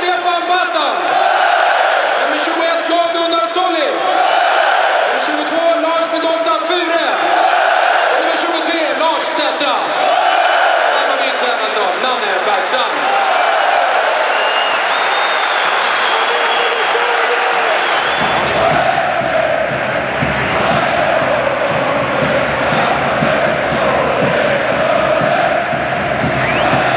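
A stadium crowd cheers and roars.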